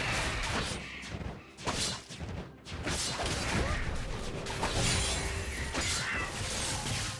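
Game spell effects burst and crackle during a fight.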